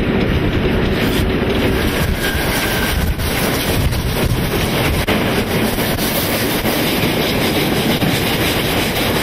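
A train rumbles and clatters steadily along the tracks.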